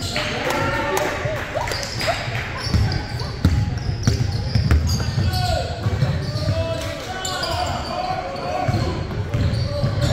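Players' footsteps pound across the court.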